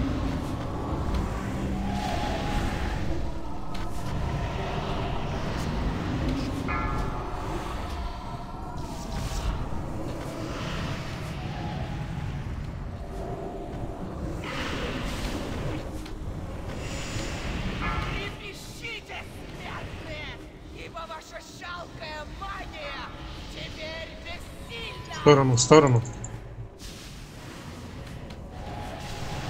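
Magic spells whoosh and crackle in a busy fantasy battle.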